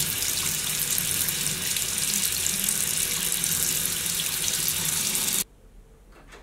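Water runs steadily from a tap.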